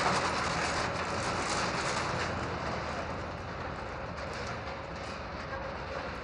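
Printing presses clatter and thump in a large room.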